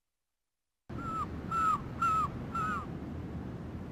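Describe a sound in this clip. Seagulls cry overhead.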